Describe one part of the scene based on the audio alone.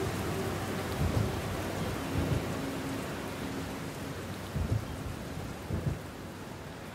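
Thunder rumbles and booms in the distance.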